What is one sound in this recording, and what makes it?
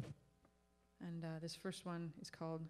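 A violin plays a lively melody.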